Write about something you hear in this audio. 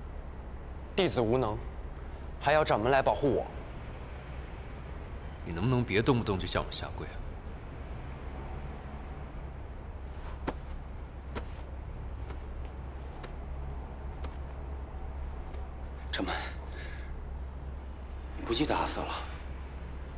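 A young man speaks in short, emotional bursts close by.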